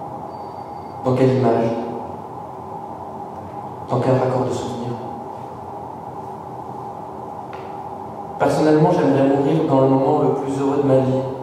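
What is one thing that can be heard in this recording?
A man speaks calmly into a microphone, heard through loudspeakers.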